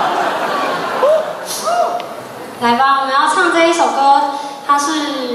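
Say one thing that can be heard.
A young woman speaks into a microphone, heard through loudspeakers in a large hall.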